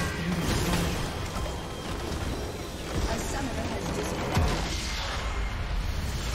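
Game spell effects crackle and burst in a fight.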